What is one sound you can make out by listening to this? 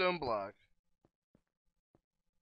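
Blocks are set down with soft, short taps.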